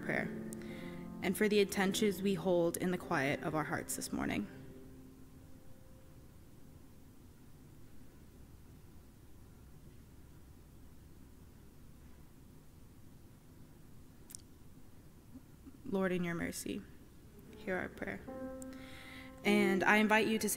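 A young woman speaks calmly into a microphone in a large echoing hall, pausing between phrases.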